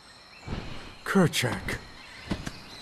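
A gorilla grunts and hoots loudly.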